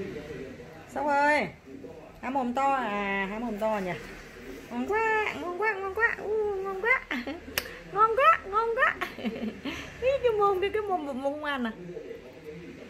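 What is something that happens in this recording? A baby coos and babbles close by.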